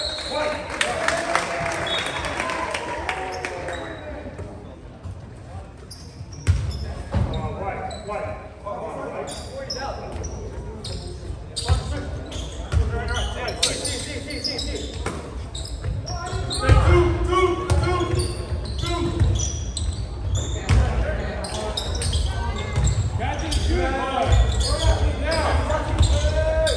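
Young players shout and call to each other.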